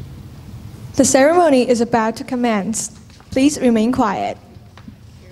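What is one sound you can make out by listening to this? A woman speaks into a microphone over loudspeakers in a large echoing hall.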